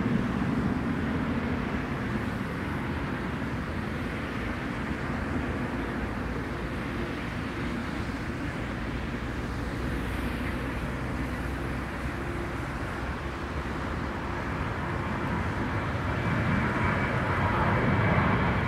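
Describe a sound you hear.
A jet airliner roars loudly as it takes off and climbs away.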